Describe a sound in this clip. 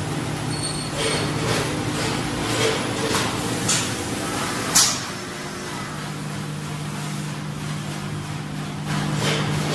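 Machine parts clatter and clack.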